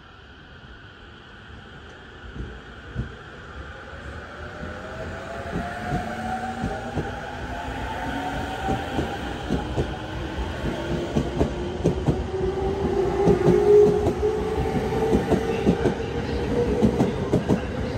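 An electric train pulls away, its motor whine rising in pitch.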